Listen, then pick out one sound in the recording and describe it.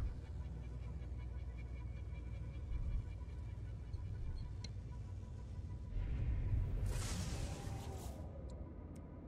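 A spaceship engine hums low and steady.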